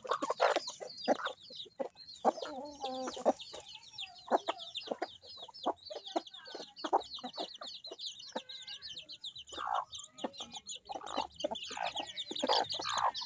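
Hens peck at grain with quick taps.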